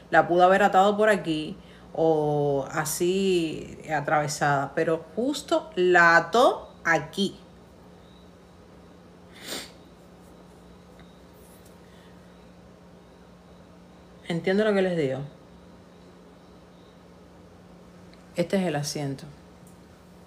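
A young woman speaks with animation close to a phone microphone, pausing at times.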